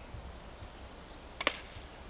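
A stick knocks against a tree trunk.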